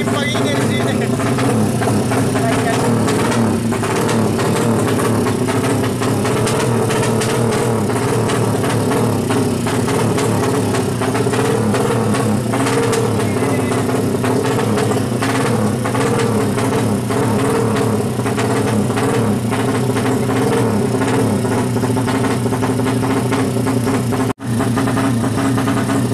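A motorcycle engine revs loudly and rattles close by.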